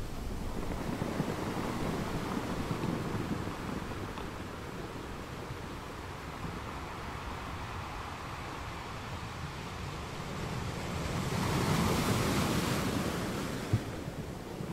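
Ocean waves roll in and crash steadily onto rocks, swelling loudly now and then.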